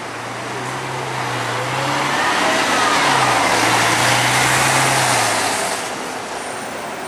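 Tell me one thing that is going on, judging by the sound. A bus engine roars past up close.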